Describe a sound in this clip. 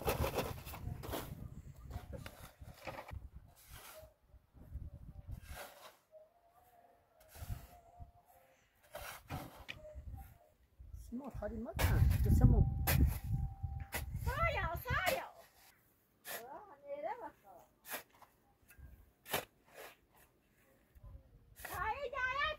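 A shovel scrapes and digs into sand and gravel.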